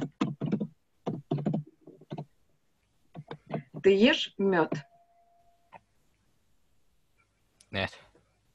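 A woman speaks calmly over an online call, in short phrases.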